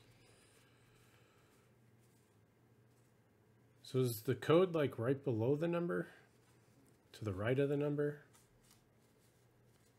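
Stiff cardboard cards rustle and flick as they are sorted by hand.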